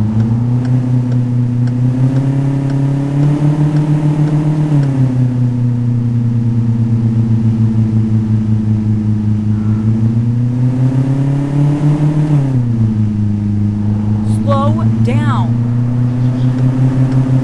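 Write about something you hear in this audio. A car engine hums steadily, its pitch slowly rising and then dropping as gears change.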